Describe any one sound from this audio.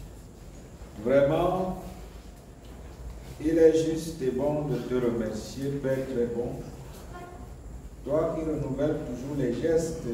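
A man reads out calmly, close by.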